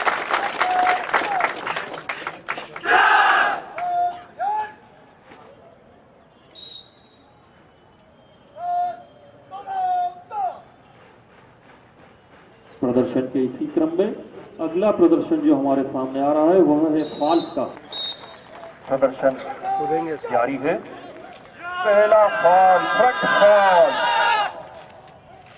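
A large group of men shout together in unison.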